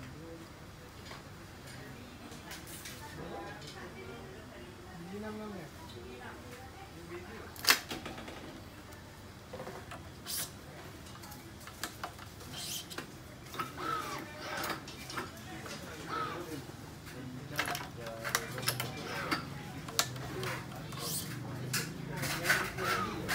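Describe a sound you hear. Racket strings click and snap as they are threaded and pulled tight.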